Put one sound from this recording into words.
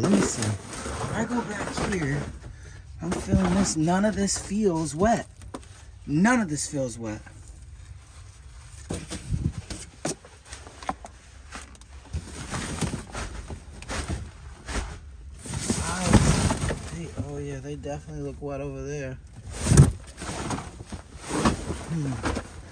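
Cardboard boxes scrape and rustle as they are pushed aside.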